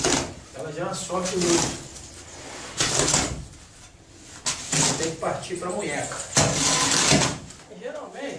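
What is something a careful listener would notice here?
A hoe scrapes and drags through a pile of sand and gravel.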